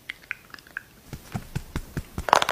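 A makeup brush sweeps and brushes close to a microphone.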